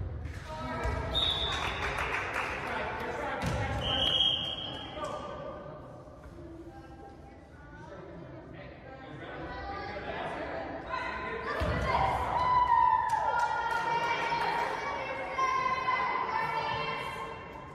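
Players' shoes squeak on a gym floor in a large echoing hall.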